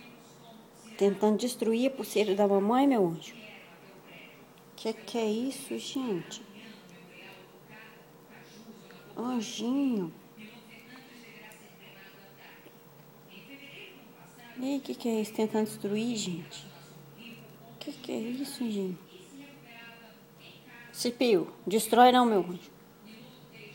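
A cockatiel chirps and whistles softly up close.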